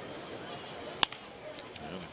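A wooden bat cracks as it hits a baseball.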